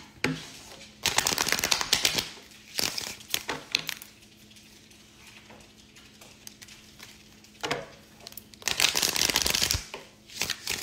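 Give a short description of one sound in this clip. Cards riffle and flutter as they are shuffled.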